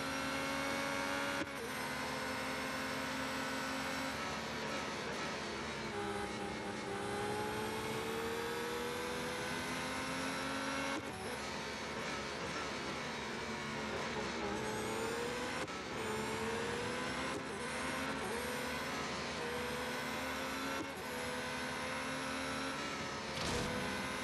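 A racing car engine whines loudly, rising and falling in pitch as it shifts gears.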